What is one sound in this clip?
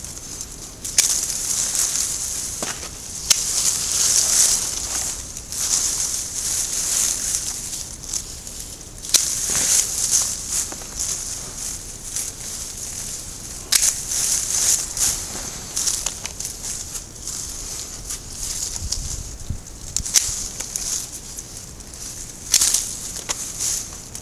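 Leaves and branches rustle as they are pushed aside.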